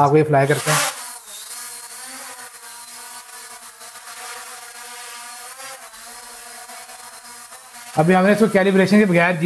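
A small drone's propellers whir with a steady high buzz.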